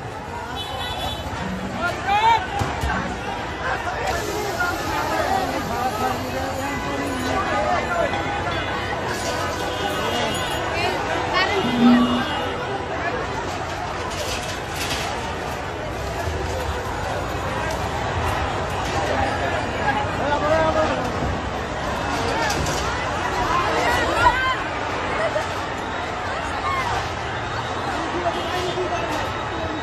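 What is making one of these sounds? A crowd of people shouts and talks excitedly nearby.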